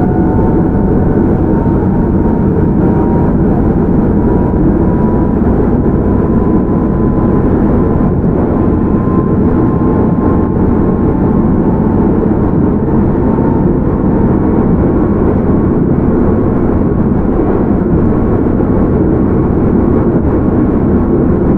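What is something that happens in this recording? A train's motor hums with a faint whine.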